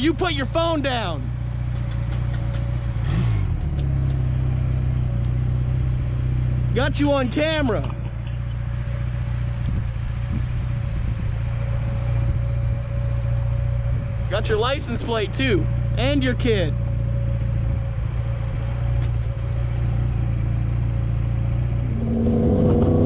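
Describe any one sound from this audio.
A motorcycle engine idles with a low steady rumble.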